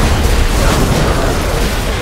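Fire roars in bursts.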